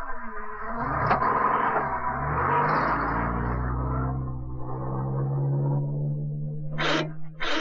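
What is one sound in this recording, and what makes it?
A car engine revs as a car pulls away.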